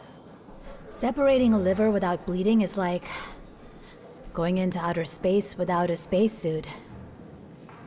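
A woman speaks calmly and warmly nearby.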